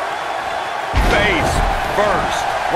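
A body slams down hard onto a wrestling ring mat.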